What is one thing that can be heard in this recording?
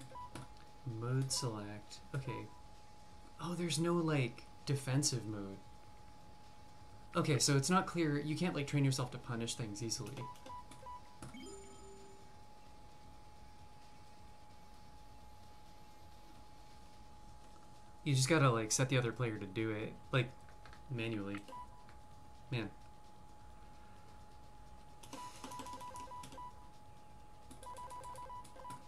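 Game menu beeps sound as options are selected.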